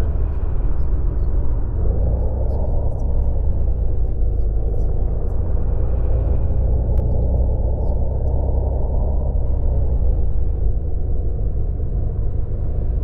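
A bus engine hums steadily, rising and falling slightly in pitch.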